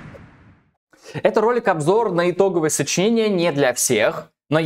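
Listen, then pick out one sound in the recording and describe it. A young man speaks with animation close to a microphone.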